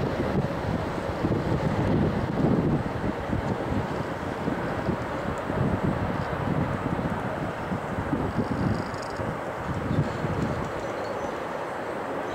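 A train rumbles faintly far off, slowly drawing closer.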